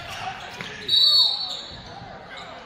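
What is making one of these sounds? A referee's whistle blows sharply once.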